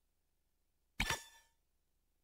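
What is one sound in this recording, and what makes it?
A short electronic click sounds once.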